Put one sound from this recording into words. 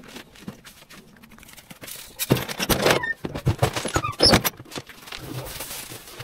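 Footsteps scuff on a concrete path close by.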